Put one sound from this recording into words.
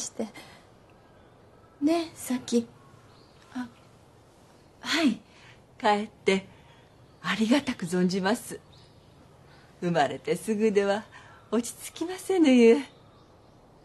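A middle-aged woman speaks gently.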